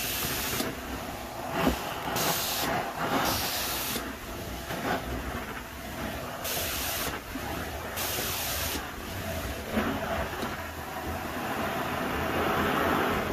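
A carpet cleaning wand sucks loudly with a steady roaring hiss.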